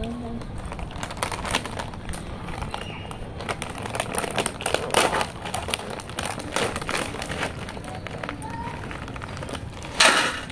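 A crisp packet crinkles and rustles as a boy tears it open.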